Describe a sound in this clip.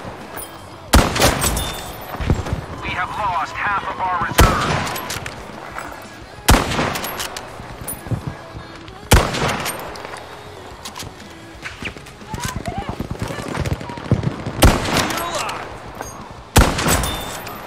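A rifle fires loud sharp shots that echo away.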